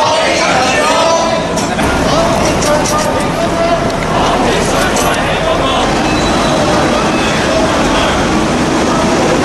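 A crowd of marchers chatters and chants outdoors.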